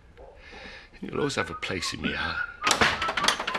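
An elderly man speaks in a troubled, earnest voice, close by.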